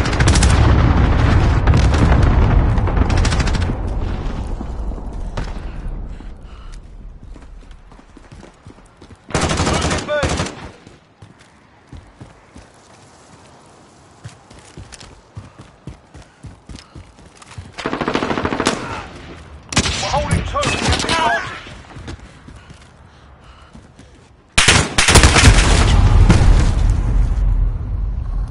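Gunfire rattles in rapid bursts of shots.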